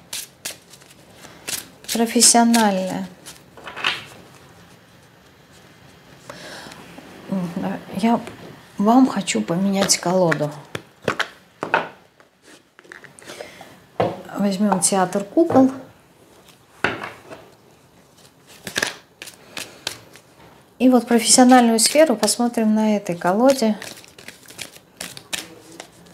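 Playing cards shuffle and riffle in a woman's hands.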